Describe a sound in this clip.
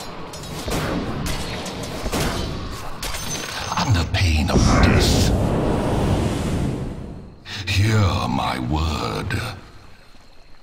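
Magical blasts and clashing hits of a fight crackle and boom.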